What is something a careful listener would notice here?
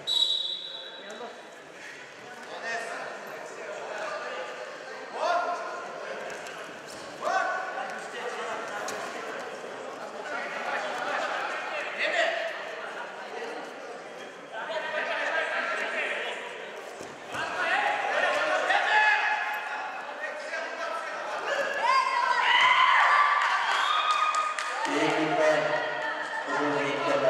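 Spectators shout and call out loudly in an echoing hall.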